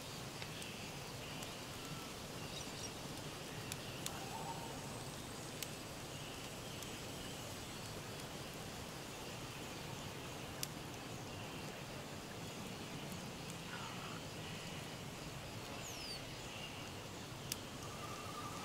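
Wind rustles steadily through the trees.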